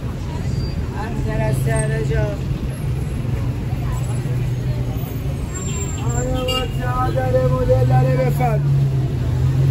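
People passing by talk nearby.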